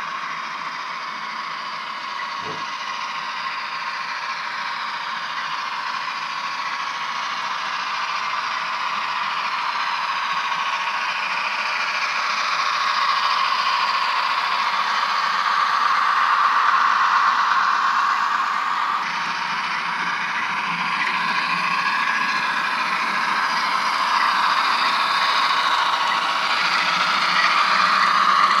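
A model train hums and clatters along the track, growing louder as it nears.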